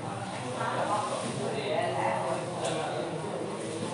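An elderly woman murmurs a prayer softly.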